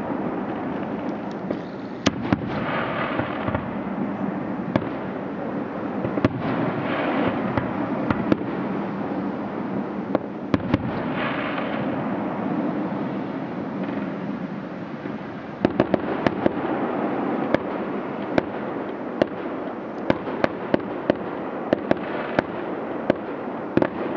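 Fireworks burst with sharp bangs and pops.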